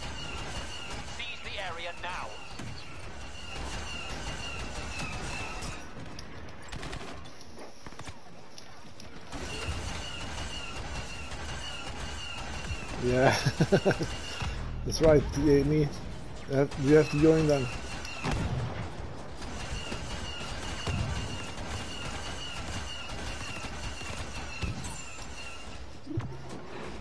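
Laser guns fire in a noisy space battle.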